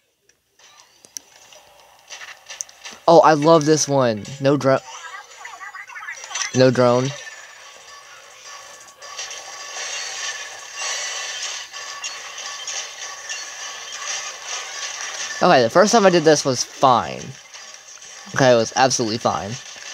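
Electronic game music plays faintly through a small speaker.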